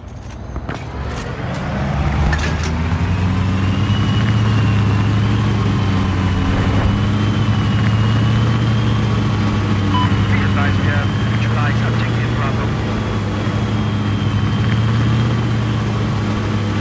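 Water splashes against a moving boat's hull.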